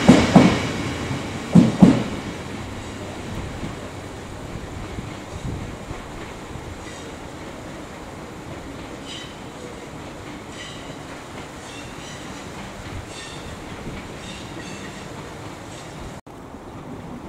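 A train rumbles away along the tracks and fades.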